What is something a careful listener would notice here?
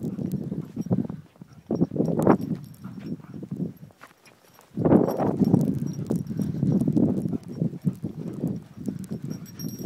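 A dog's paws crunch and patter through snow.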